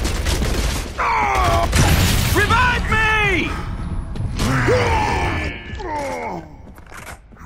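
A monster growls and shrieks.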